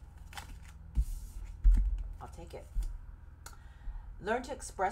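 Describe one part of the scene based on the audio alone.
Playing cards rustle and tap as they are handled.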